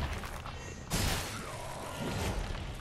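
Flames burst with a roaring whoosh.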